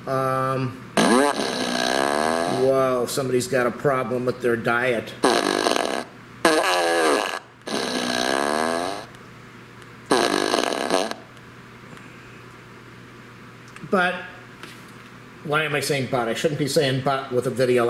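A small loudspeaker blares loud, bending farting noises in short bursts.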